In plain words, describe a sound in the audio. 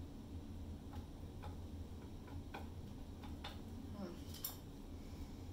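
A small metal tool taps and clinks against a cup.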